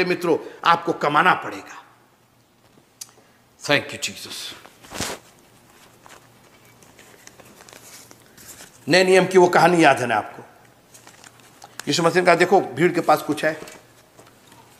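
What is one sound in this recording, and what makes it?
A middle-aged man speaks with animation close to the microphone, in short bursts with pauses.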